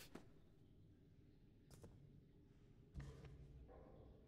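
A book is set down on a hard surface with a soft thud.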